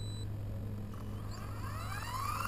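A small electric motor whines and rises in pitch as a model helicopter's rotor spins up.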